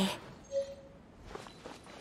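Footsteps run quickly across the ground.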